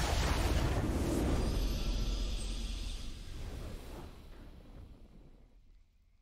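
A triumphant game fanfare plays and slowly fades.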